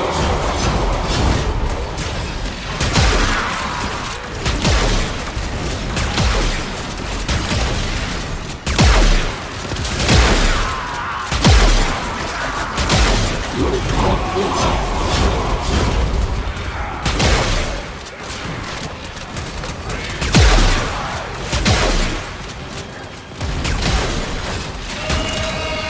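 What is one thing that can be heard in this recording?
Heavy blows and blade slashes strike in quick bursts.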